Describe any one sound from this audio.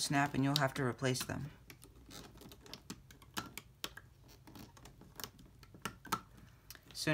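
A small plastic hook clicks and taps softly against stretched rubber bands.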